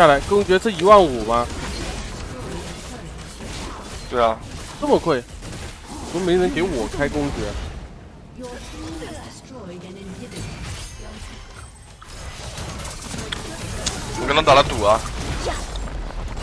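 Game combat effects clash and whoosh.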